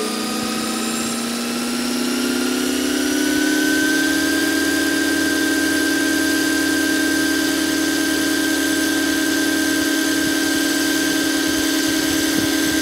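A helicopter engine whines, rising in pitch and then holding steady.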